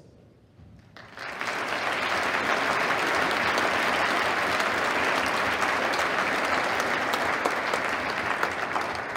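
Loud applause breaks out and goes on.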